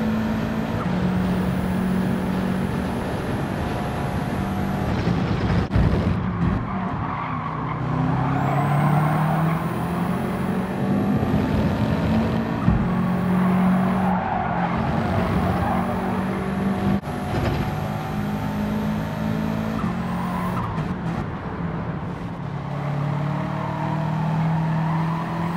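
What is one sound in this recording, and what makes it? A racing car engine roars, revving up and dropping through the gears.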